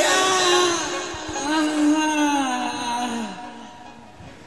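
Electronic music with a pitched melody plays, then fades away.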